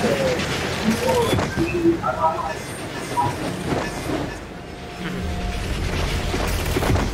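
Air rushes past in a steady whoosh during a fast dive.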